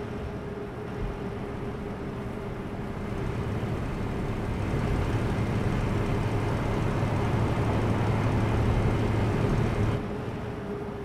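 A diesel truck engine drones, heard from inside the cab while cruising on a motorway.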